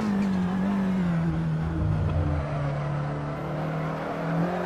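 A racing car engine hums steadily at lower revs through a bend.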